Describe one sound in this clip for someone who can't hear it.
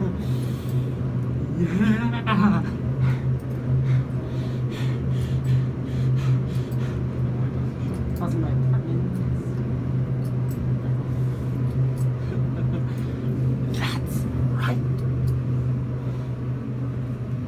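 An elevator hums steadily as it rises.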